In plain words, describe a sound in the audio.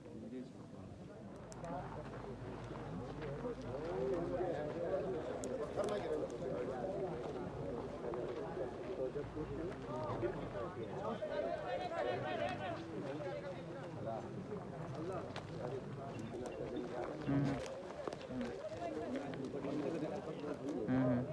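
A crowd of men talk and call out nearby outdoors.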